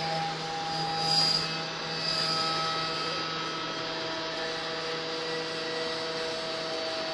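A machine spindle whirs steadily as it mills foam.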